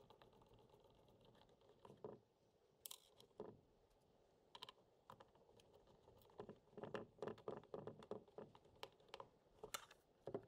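A screwdriver clicks and scrapes against a plastic case.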